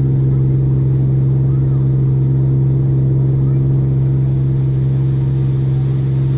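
Water churns and splashes in the boat's wake.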